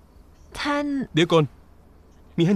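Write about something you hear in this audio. A young woman speaks brightly, close by.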